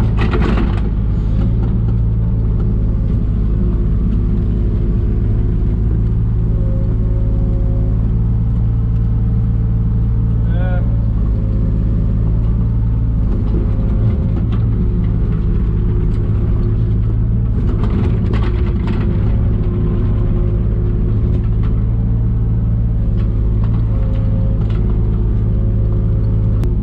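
An excavator bucket scrapes and knocks against soil and stones.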